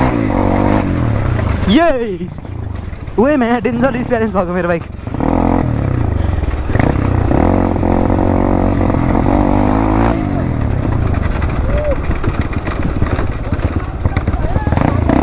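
Tyres crunch and rattle over loose gravel.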